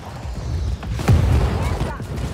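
A distant explosion thuds.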